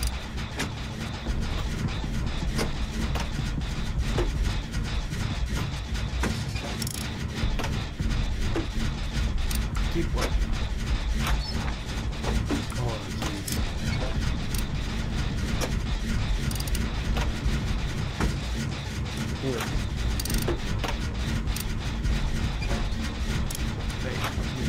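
A generator engine rattles and clanks steadily.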